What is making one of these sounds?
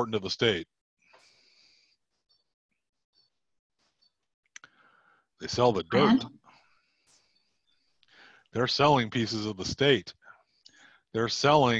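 A man speaks calmly in pauses over an online call.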